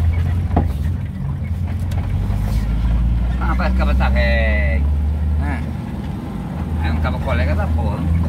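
A car engine hums low and steady from inside the car while driving.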